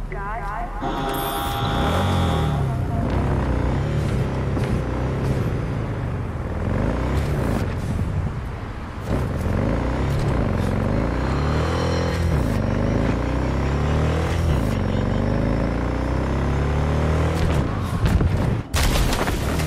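A motorcycle engine revs and roars, rising and falling as it speeds up and changes gear.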